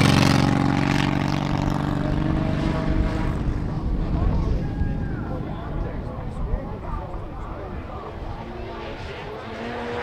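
Rally car engines roar and rev in the distance.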